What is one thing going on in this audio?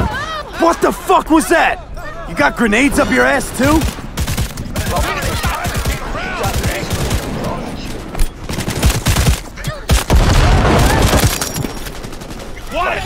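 Guns fire in rapid bursts of sharp shots.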